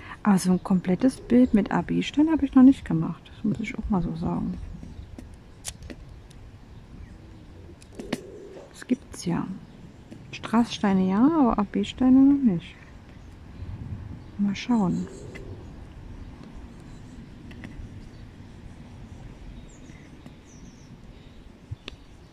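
A pen taps softly, placing tiny beads on a board.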